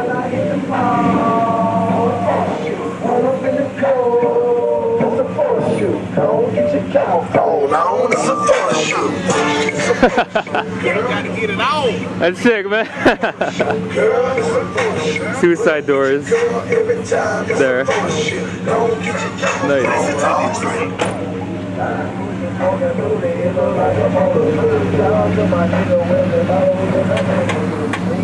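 A large truck's engine idles with a low steady rumble.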